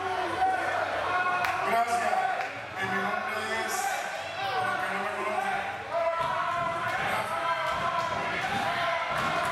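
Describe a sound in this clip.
A man talks loudly into a microphone, heard through loudspeakers in a large echoing hall.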